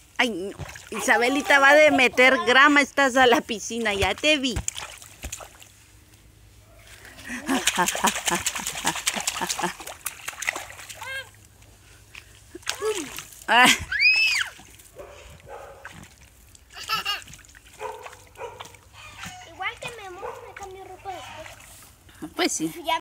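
A little girl talks and squeals close by.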